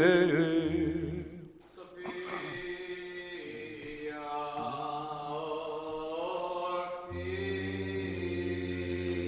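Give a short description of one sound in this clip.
A man chants in a slow, sustained melody in a large echoing hall.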